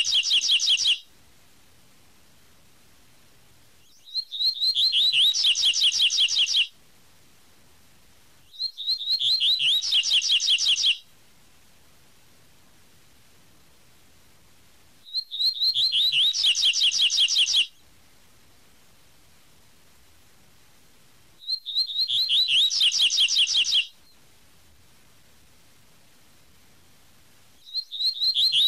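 A small songbird sings bursts of quick, high, rapid chirping phrases, with short silences between them.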